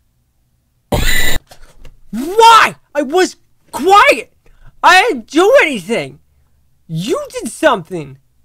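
A man shouts excitedly into a microphone.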